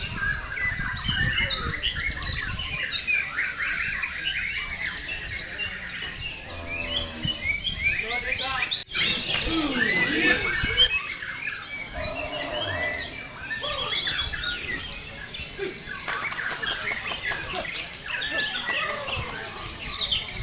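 A songbird sings a rapid, varied song of chirps and whistles close by.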